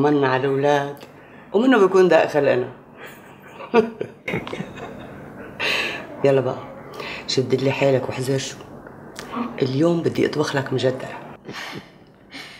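A middle-aged woman speaks softly and warmly, close by.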